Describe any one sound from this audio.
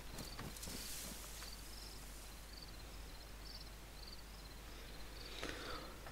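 Leaves and branches rustle as someone pushes through dense bushes.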